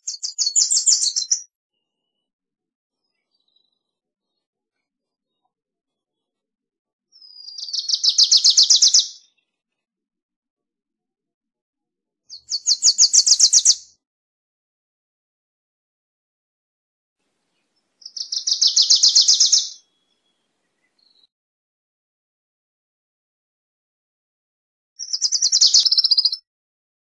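A small songbird sings a quick, chattering trill in short bursts, close by.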